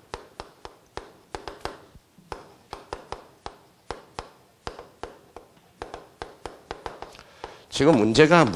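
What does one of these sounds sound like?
Chalk taps and clicks sharply on a blackboard.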